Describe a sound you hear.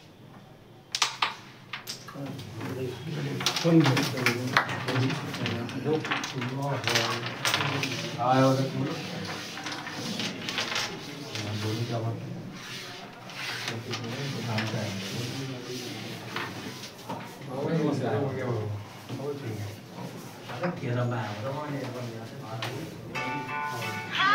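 Wooden game pieces click and clatter across a board.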